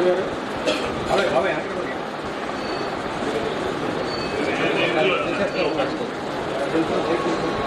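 A crowd of men talk and murmur close by.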